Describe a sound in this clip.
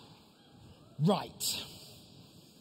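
A man speaks briefly through a microphone in a large, echoing hall.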